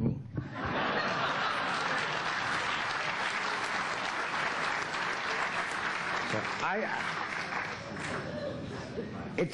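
An audience claps in a large room.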